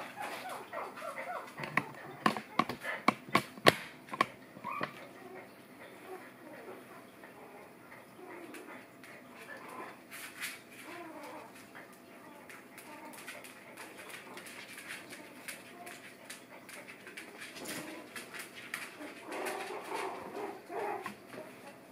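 Puppies scuffle and pad about on a soft mat.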